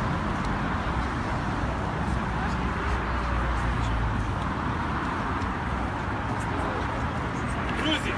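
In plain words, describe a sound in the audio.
A group of men murmurs and talks quietly nearby.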